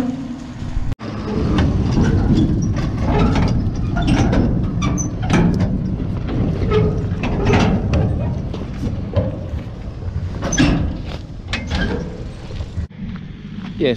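Stones crunch under heavy tyres.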